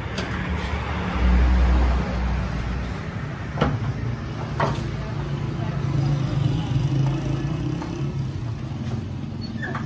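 Plastic sacks rustle.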